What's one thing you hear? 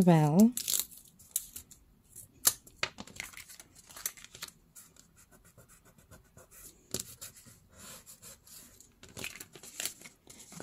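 Paper rustles and scrapes as hands handle and press it.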